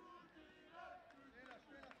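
A goalkeeper kicks a football.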